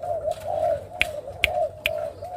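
A finger taps on a wire cage.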